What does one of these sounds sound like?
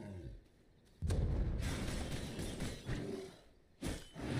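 A sword swings and strikes with a whoosh.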